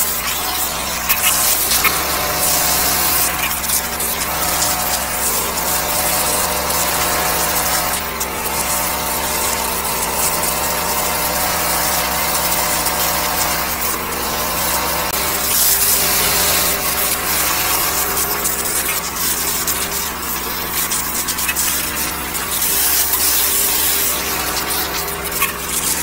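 A high-pressure water jet hisses loudly into a drain.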